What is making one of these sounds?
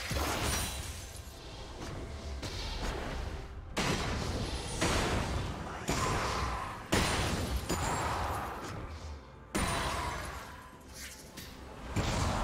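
Magic spells burst and crackle in a fantasy battle.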